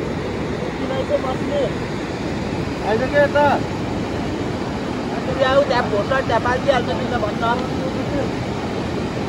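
A man talks in short bursts nearby.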